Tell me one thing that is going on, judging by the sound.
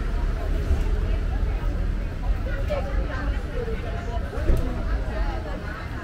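People talk in a street.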